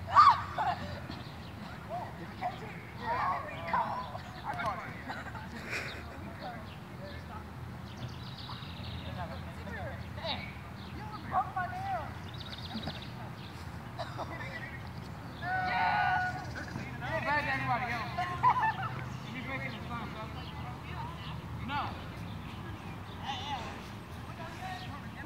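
Children shout and call out playfully outdoors, some way off.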